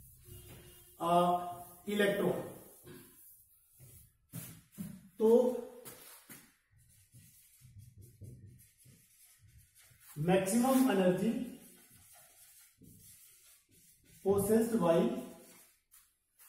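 A middle-aged man speaks in bursts, calmly explaining, close by.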